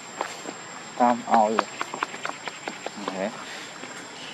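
A monkey gives short grunting calls close by.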